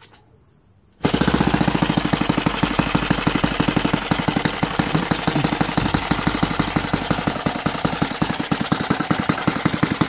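A small model engine runs loudly with a fast, buzzing rattle.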